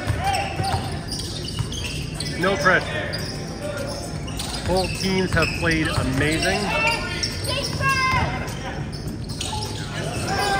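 Young men shout to each other in an echoing gym.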